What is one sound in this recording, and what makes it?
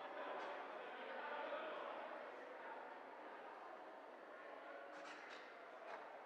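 A crowd of people chat quietly in a large echoing hall.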